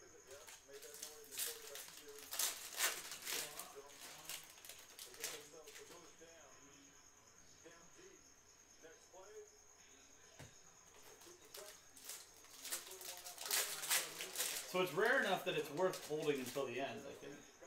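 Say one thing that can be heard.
Cards rustle and crinkle as they are handled.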